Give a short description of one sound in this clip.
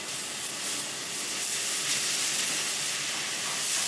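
Sparks crackle as a torch cuts through steel.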